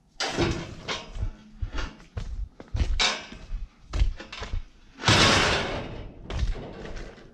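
Footsteps splash on wet concrete.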